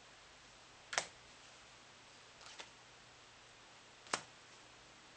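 Playing cards flick and snap.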